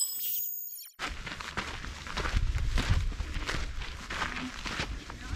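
Footsteps crunch on dry sand at a walking pace.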